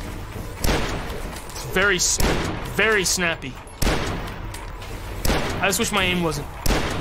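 A weapon fires repeatedly with sharp bangs.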